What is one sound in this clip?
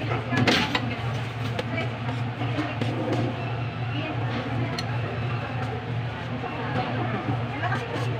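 Metal serving utensils clink against plates and trays.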